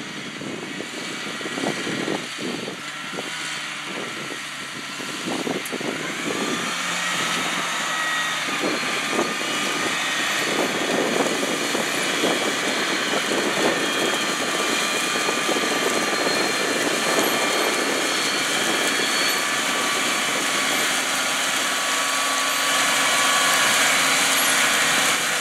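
A tractor engine hums steadily and grows louder as the tractor draws near.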